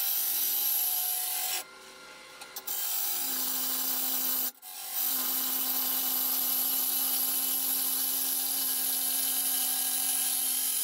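A gouge scrapes and hisses against spinning wood.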